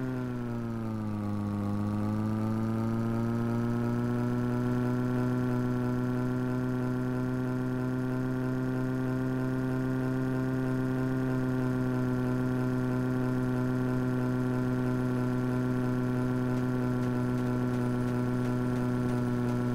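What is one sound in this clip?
A car engine hums steadily, dipping briefly and then rising as the car speeds up.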